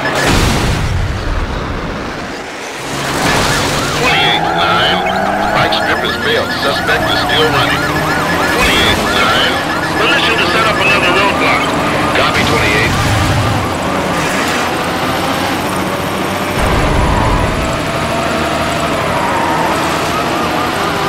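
A racing car engine roars and revs up and down.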